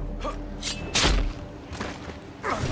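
A pistol grip strikes a man's head with a heavy thud.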